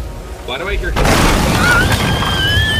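A cannon blast booms.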